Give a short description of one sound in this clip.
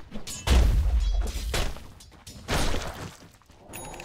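Spell blasts and impacts boom in a fight.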